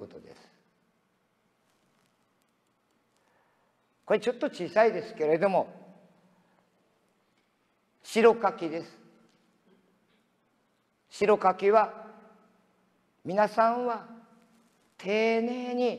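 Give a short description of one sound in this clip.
A man speaks in short phrases through a microphone in a large echoing hall.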